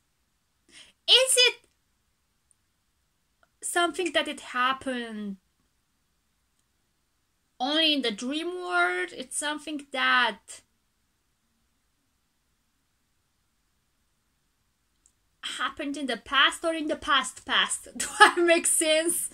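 A young woman talks with animation close to a microphone, in bursts with pauses.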